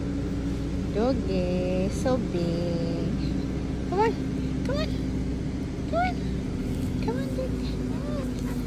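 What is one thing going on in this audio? A dog whines in short, high whimpers close by.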